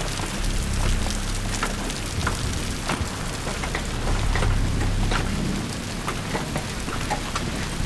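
Hands and boots clank on a metal ladder during a climb.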